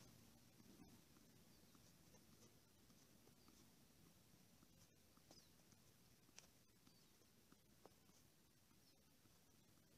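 A tennis ball thuds softly off a man's shoulders outdoors.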